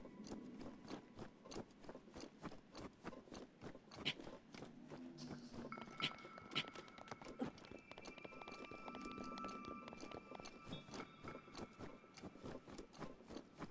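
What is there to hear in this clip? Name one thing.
Footsteps scuff and rustle through grass in a quick, steady rhythm.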